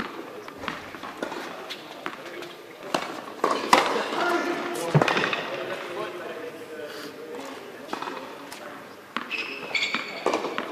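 Tennis balls thud off rackets, echoing in a large indoor hall.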